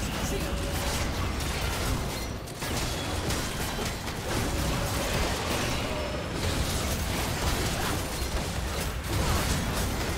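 Game spells and attacks crackle and burst in a dense, steady clash.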